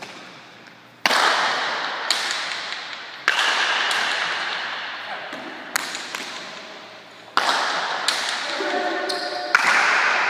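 A ball smacks hard against a wall and echoes through a large hall.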